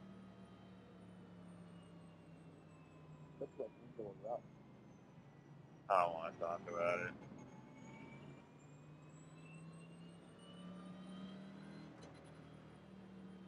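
A race car engine hums steadily at low speed.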